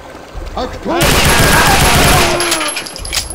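Gunfire blasts loudly in a burst.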